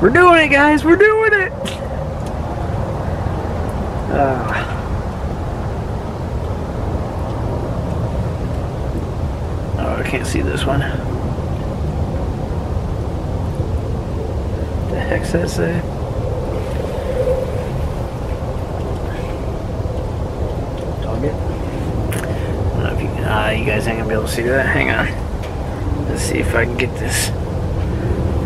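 A wood stove fire crackles softly.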